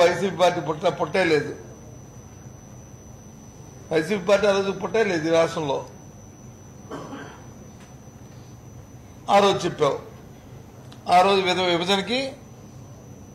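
A middle-aged man speaks into a nearby microphone in short, emphatic bursts with pauses.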